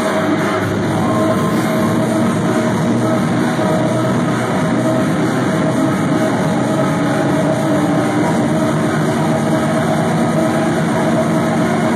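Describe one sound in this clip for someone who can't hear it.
A crowd cheers and shouts over the music.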